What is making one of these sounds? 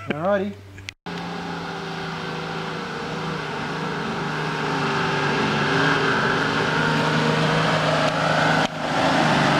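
A four-wheel drive engine grows louder as it approaches and passes close by.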